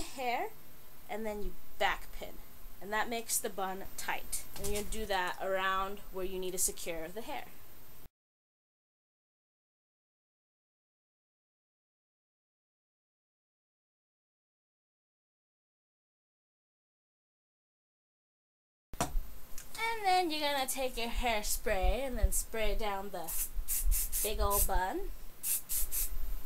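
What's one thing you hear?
A young woman talks calmly and clearly, close by.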